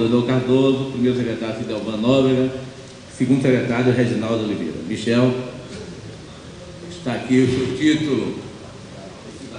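An elderly man reads out clearly through a microphone.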